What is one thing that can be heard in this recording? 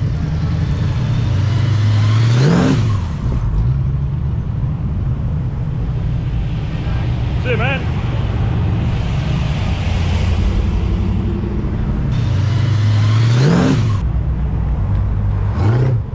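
Old car engines rumble deeply as cars drive past one after another.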